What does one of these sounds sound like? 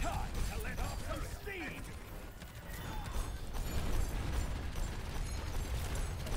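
Heavy guns fire in rapid bursts with deep booms.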